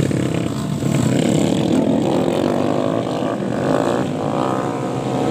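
Dirt bike engines rev loudly as motorcycles race past.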